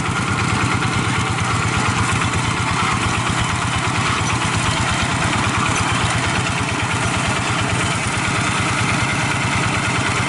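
A small diesel engine chugs steadily close by.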